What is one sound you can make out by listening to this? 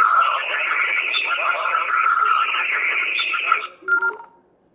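A two-way radio's small loudspeaker plays a muffled, tinny transmission.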